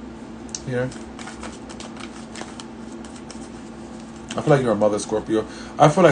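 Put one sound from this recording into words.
Cards riffle and slap as a deck is shuffled.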